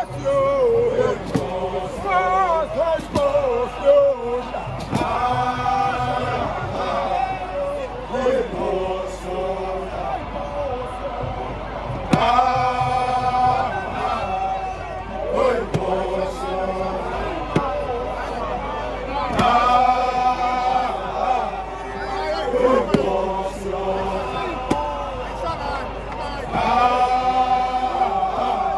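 A man shouts a call with animation close by.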